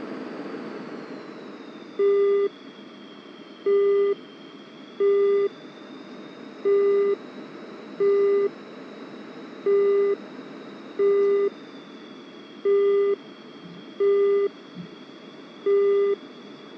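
A jet engine whines steadily, its pitch slowly dipping and rising.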